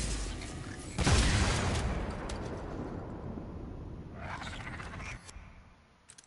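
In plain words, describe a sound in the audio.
A loud magical blast roars and rumbles, then slowly dies away.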